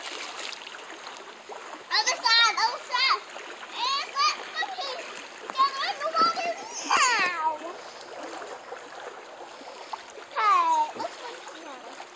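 Water splashes gently as a young girl paddles in a pool.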